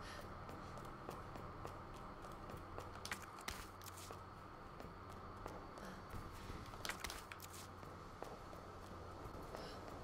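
Footsteps thud slowly on a creaking floor.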